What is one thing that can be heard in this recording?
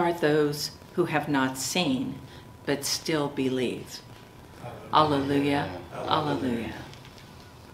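A middle-aged woman reads aloud calmly into a microphone in a reverberant hall.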